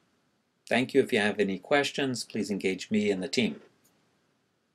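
A middle-aged man speaks calmly and clearly into a nearby microphone.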